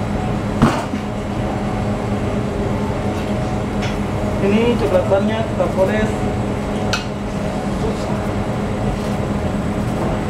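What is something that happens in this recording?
A pastry brush dabs softly on buns.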